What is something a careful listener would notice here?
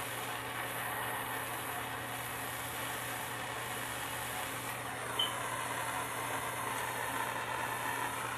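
A torch flame roars steadily.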